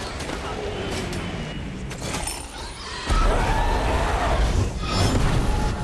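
Fiery magic attacks whoosh and crackle in a video game.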